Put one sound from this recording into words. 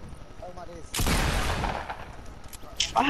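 A shotgun fires a loud blast at close range.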